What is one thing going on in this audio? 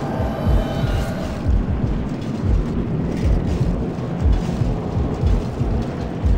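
Heavy armored footsteps thud on stone.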